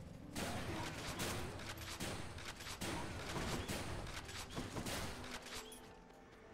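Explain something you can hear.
Magic blasts whoosh and crackle in a game fight.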